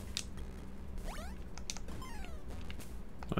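Short electronic game sound effects chirp and blip.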